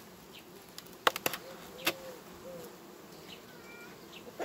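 A metal tool scrapes and clicks against wooden hive frames.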